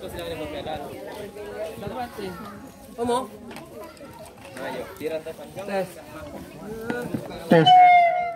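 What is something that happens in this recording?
Several men and boys talk at once nearby, outdoors.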